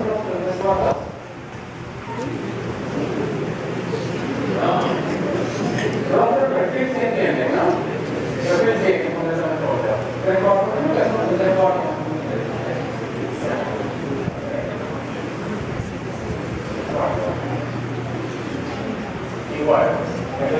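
Many young people chatter and murmur in a large echoing hall.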